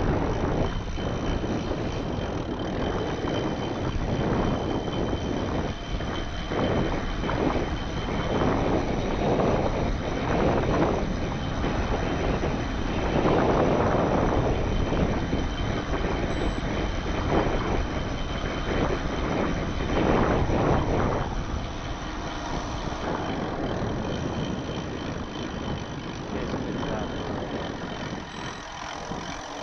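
Wind buffets loudly past a moving bicycle.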